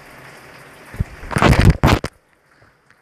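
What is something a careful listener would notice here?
A hand fumbles and knocks against a phone close by.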